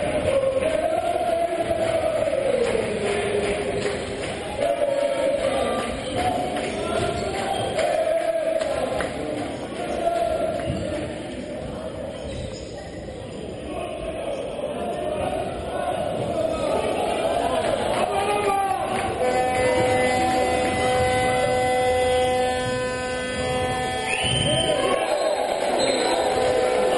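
A crowd of spectators chants and sings loudly in a large echoing hall.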